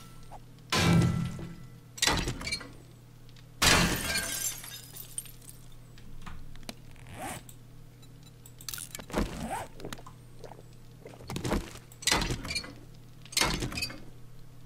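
A wrench clangs against a metal bed frame in sharp, repeated blows.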